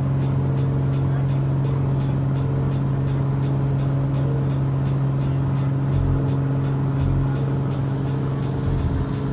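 A small plane's engine drones loudly and steadily from inside the cockpit.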